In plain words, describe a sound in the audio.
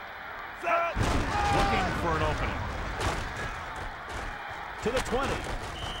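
A stadium crowd roars during a play.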